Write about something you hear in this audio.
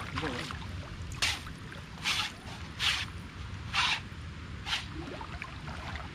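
Feet slosh through shallow water.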